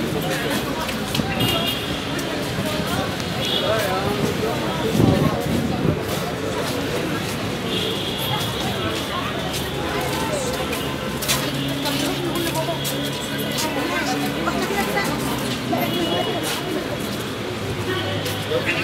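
Voices of passers-by murmur nearby.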